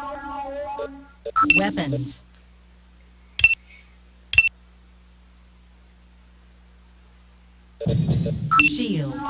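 Short electronic beeps and blips sound from a computer game.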